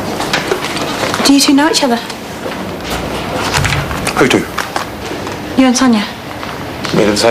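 A young woman asks a question calmly, close by.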